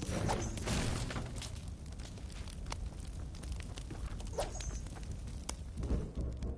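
A pickaxe strikes wood with sharp, repeated knocks.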